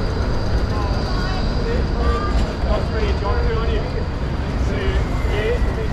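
A tram rolls past.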